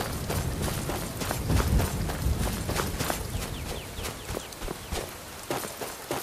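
Footsteps crunch on snow and gravel at a steady walking pace.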